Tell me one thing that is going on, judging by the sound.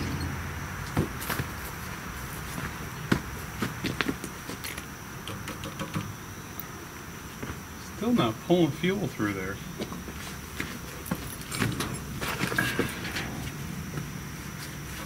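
Metal parts clank and knock.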